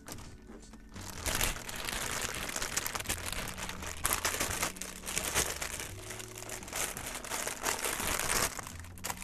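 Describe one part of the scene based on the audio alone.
A plastic bag crinkles and rustles loudly close by.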